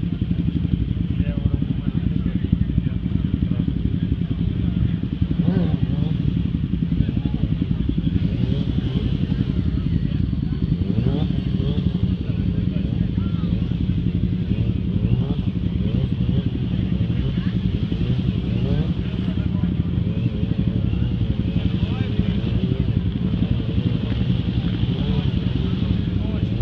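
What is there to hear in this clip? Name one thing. A motorcycle engine revs and roars up close.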